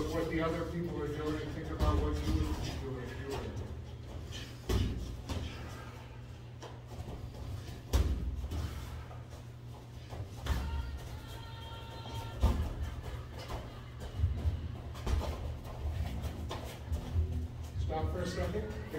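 Boxing gloves thud on pads and bodies in quick bursts.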